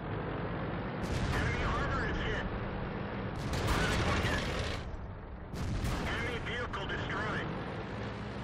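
Cannon blasts and explosions boom loudly in bursts.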